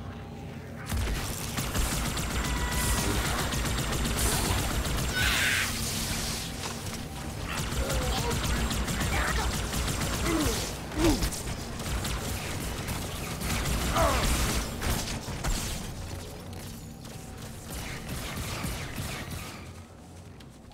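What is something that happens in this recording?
Energy weapons fire in rapid bursts of sharp zaps.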